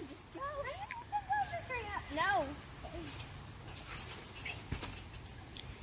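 A girl's feet thump on a trampoline mat.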